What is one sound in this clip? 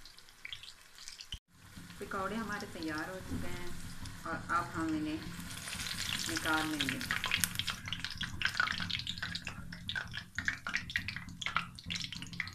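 Potato-onion fritters sizzle and crackle in hot oil.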